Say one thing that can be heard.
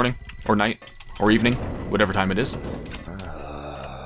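A metal door slides open with a hiss.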